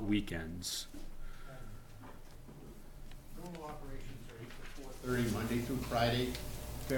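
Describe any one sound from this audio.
A middle-aged man speaks calmly into a handheld microphone.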